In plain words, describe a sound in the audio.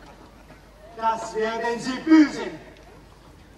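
A man shouts.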